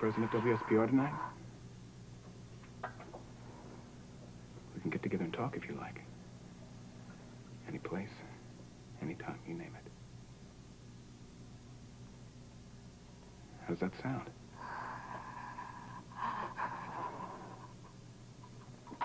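A man speaks quietly into a telephone, in short bursts with pauses.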